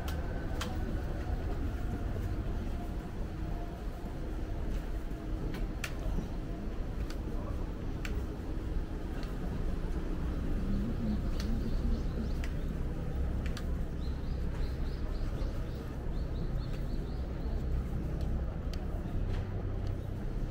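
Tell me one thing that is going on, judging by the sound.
Traffic rumbles steadily along a nearby street.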